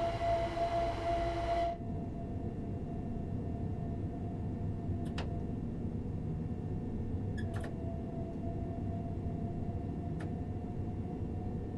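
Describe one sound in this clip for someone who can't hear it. An electric train rumbles along the tracks with a steady low drone.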